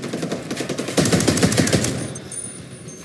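A mounted turret fires heavy rounds loudly.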